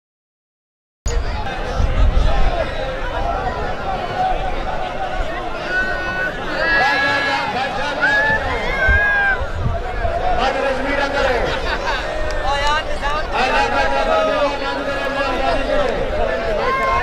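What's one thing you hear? A large outdoor crowd of men chatters and calls out loudly.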